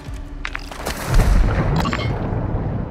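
A body splashes loudly into water.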